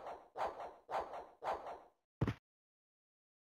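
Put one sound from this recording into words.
A video game plays sharp rhythmic sound effects.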